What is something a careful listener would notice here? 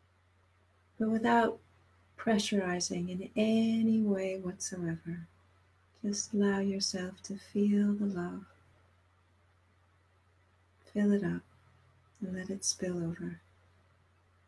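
A middle-aged woman speaks calmly and close to a microphone, in short phrases with pauses.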